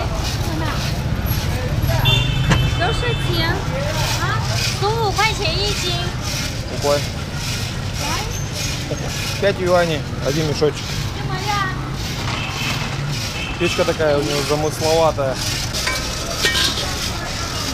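Young girls talk and chatter close by, outdoors on a busy street.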